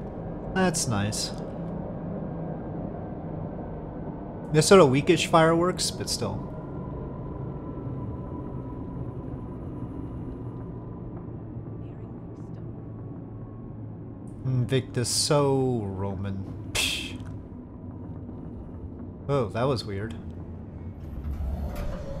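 A tram hums steadily as it glides along its track.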